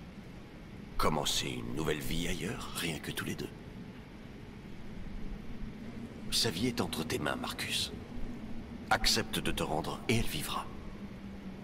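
A man speaks tensely and close by.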